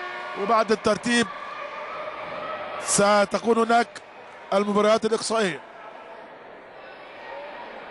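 A crowd murmurs softly in a large echoing hall.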